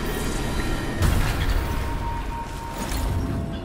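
Flames whoosh from a fiery blast.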